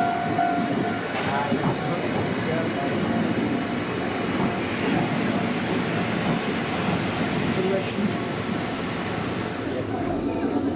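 A train rolls past close by.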